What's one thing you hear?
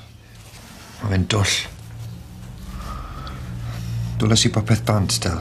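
A man speaks quietly and glumly, close by.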